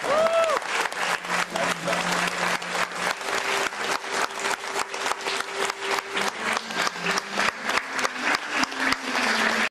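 A band plays music in a large room.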